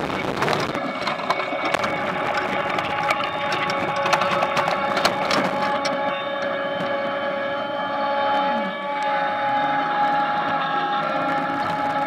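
A machine rumbles and whines steadily.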